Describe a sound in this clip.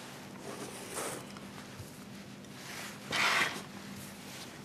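A paper tissue rustles as a hand handles it.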